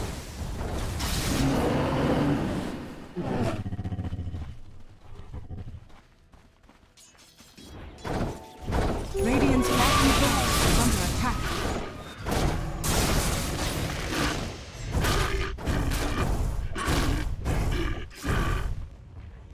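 Magic blasts and crackles burst out in a noisy battle.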